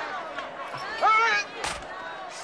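A man cries out in pain.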